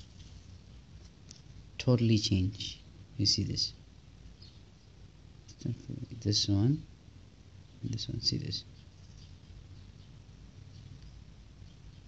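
A paper banknote rustles as it is handled.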